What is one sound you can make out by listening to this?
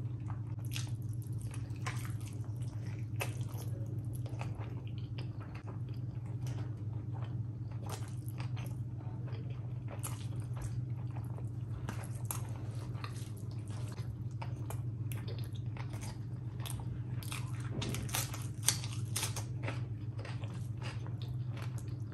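A woman chews food wetly and noisily, close to a microphone.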